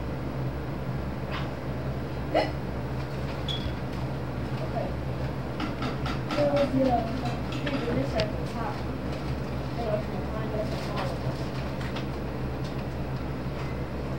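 A small brush clicks and taps against a glass bottle.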